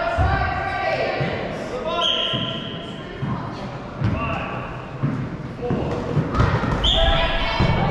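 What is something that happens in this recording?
A rubber ball thuds on the floor.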